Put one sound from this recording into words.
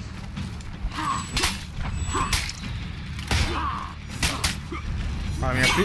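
Swords clash and clang in quick blows.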